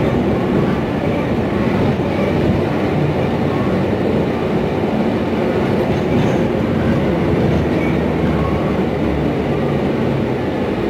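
A bus engine rumbles steadily while the bus rolls along.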